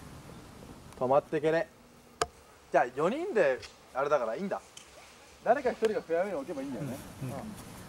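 A young man speaks casually close by.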